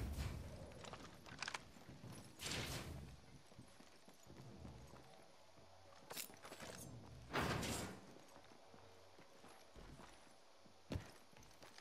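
Quick footsteps thud across metal and wooden floors.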